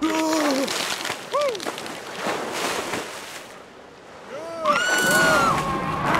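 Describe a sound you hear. Water splashes loudly as a large fish leaps out and dives back in.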